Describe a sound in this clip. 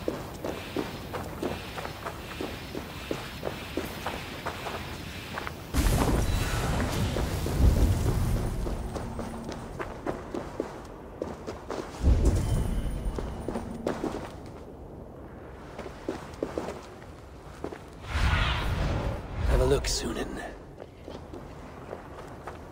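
Footsteps crunch over loose rubble.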